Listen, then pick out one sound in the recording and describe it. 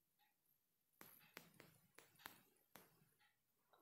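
Soft game clicks sound as letter tiles are tapped one after another.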